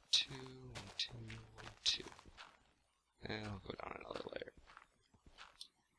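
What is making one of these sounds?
A shovel digs into dirt with short crunching thuds.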